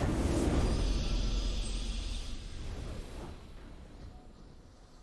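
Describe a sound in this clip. A triumphant victory fanfare swells and then fades away.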